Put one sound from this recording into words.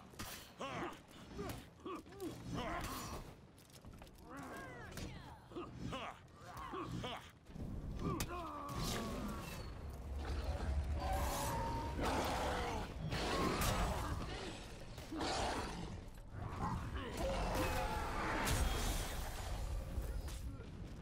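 Metal blades clash and ring in a fight.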